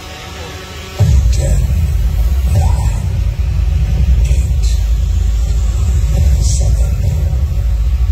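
A car engine rumbles deeply and loudly in a large echoing hall.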